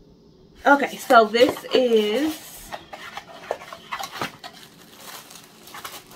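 Cardboard packaging rustles and scrapes.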